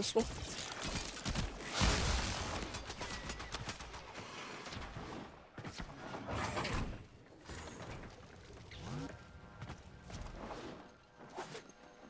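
A blade whooshes and slashes through the air again and again.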